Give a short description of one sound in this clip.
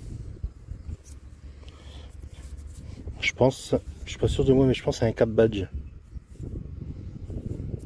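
Fingers rub dirt off a small metal object.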